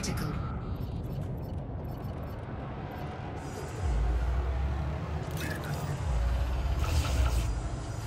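A spaceship engine rumbles low and surges louder at times.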